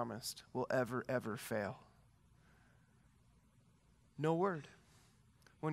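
A man speaks calmly into a headset microphone, with pauses.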